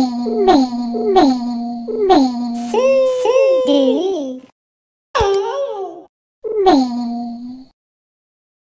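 Cartoonish squeaky sound effects chirp in quick bursts.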